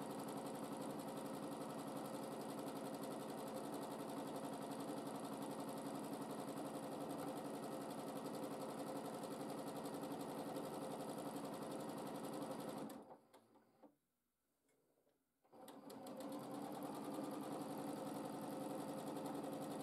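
A sewing machine hums and stitches rapidly.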